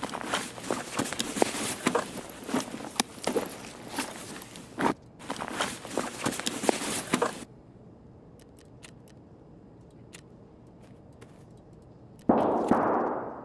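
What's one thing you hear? Short game sounds click as items are moved between slots.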